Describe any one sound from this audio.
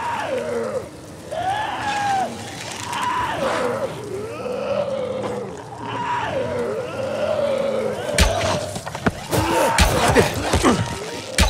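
A bowstring creaks as a bow is drawn.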